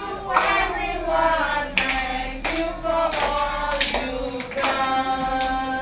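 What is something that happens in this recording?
Women and young children sing together in a lively song.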